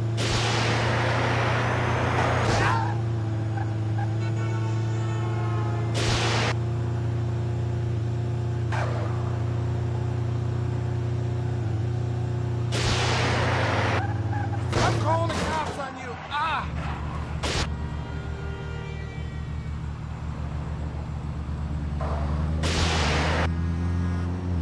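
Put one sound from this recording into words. Vehicles whoosh past loudly.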